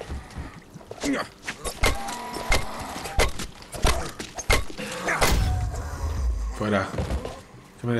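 Blows strike a body with heavy thuds.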